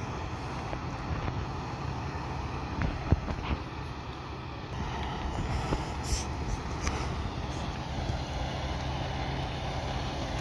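Fire engines idle nearby with a steady, deep rumble.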